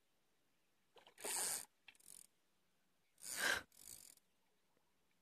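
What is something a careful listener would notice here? Fish splash and thrash at the water's surface.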